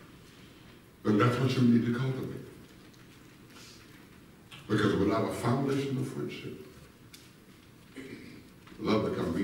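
A man speaks calmly through a microphone in a large echoing hall, with pauses.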